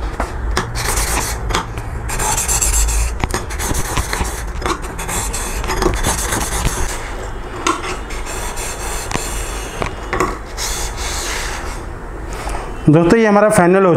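A steel blade scrapes back and forth on a wet sharpening stone.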